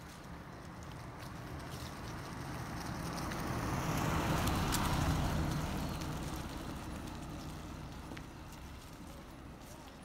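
A car drives past close by, rising and fading.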